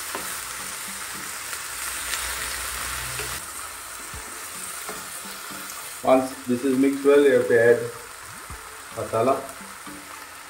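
Food sizzles softly in a hot pan.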